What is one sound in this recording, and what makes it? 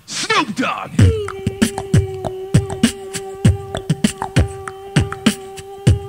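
A young man beatboxes through a microphone, with punchy kick and snare beats.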